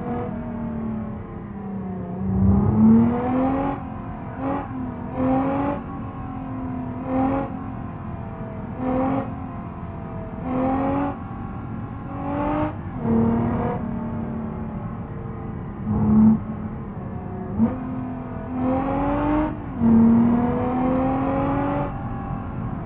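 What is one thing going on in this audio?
A simulated car engine hums as the car drives, its revs rising and falling in short bursts of throttle.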